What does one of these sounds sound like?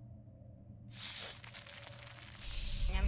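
A large spider scuttles with a rustling hiss.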